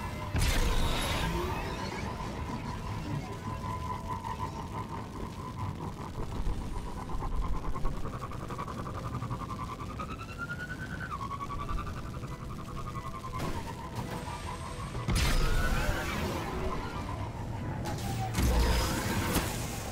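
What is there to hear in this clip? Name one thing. A hover bike engine hums steadily with a whining tone that rises and falls.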